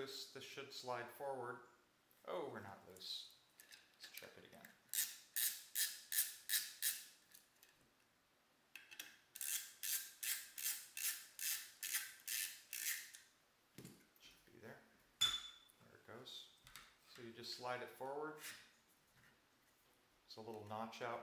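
Metal gun parts click and snap together.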